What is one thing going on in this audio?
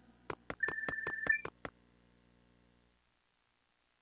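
Low video game music hums and then stops.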